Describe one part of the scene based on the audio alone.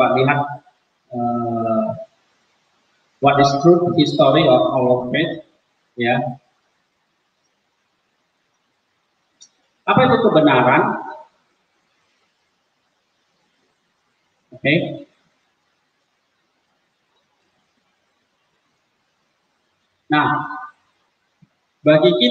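A man talks calmly through a microphone, with pauses.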